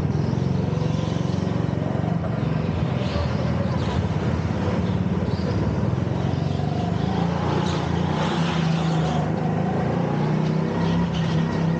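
A go-kart engine buzzes loudly up close, its pitch rising and falling with the throttle.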